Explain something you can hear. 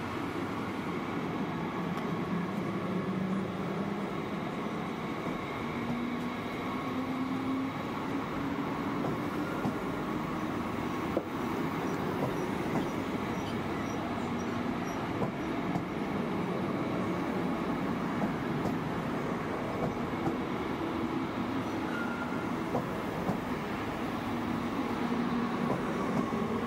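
An electric train motor hums and whines, slowly rising in pitch.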